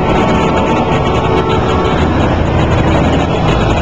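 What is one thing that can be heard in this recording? A diesel engine rumbles loudly as a vehicle drives past close by.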